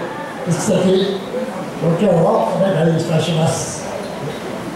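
An elderly man speaks through a microphone and loudspeaker in an echoing hall.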